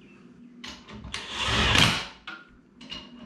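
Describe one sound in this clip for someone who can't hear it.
A power drill whirs briefly.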